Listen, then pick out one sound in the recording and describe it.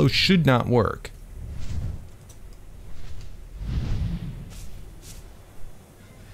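Large wings beat with a low whoosh.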